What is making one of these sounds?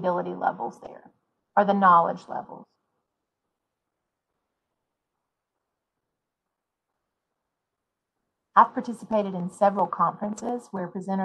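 A woman speaks calmly, heard through an online call, with long pauses.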